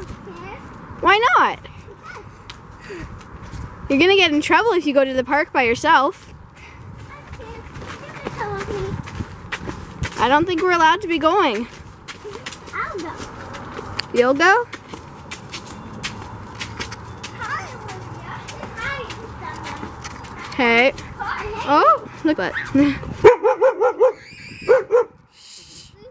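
A young girl talks and sings in a high voice close by.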